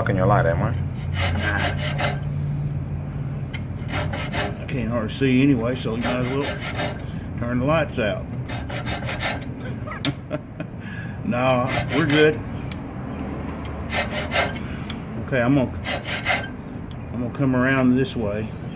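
A metal file rasps back and forth across metal.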